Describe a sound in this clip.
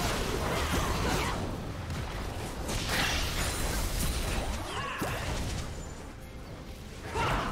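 Spell effects and hits crackle and burst in a fast fight.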